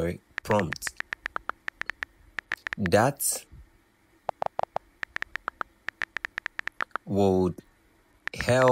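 Phone keyboard clicks tick rapidly.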